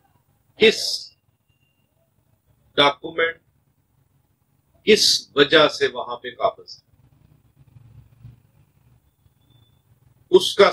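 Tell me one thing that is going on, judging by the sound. A man speaks calmly and clearly into a nearby microphone, in short bursts with pauses.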